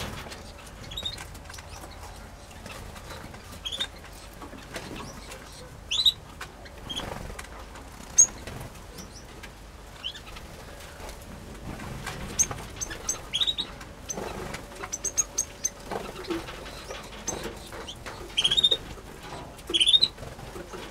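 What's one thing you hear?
Small birds chirp and tweet in short bursts nearby.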